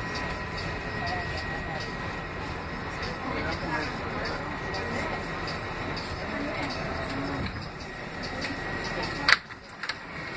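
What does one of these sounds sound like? A train rumbles and rattles along the tracks as it slows down.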